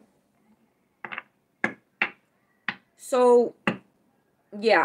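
Cards shuffle in a young woman's hands.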